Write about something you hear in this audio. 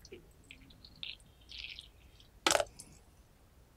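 A metal spoon scrapes inside a teapot.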